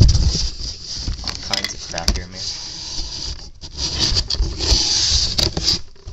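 A hand rubs and bumps against the microphone.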